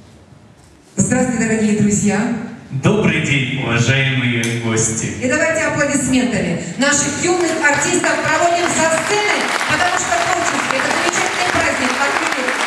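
A man speaks with animation through a microphone and loudspeakers in a large hall.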